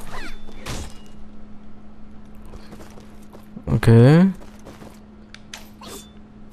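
Light, quick cartoon footsteps patter as a game character runs.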